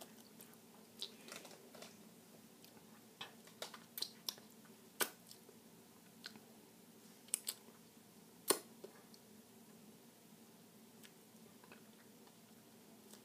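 A young girl makes wet smacking sounds with her lips and fingers.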